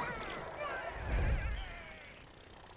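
A low boom rumbles briefly.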